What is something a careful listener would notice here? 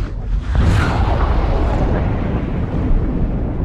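Bubbles rush and fizz.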